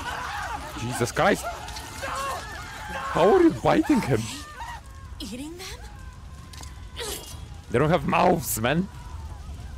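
A young man exclaims loudly.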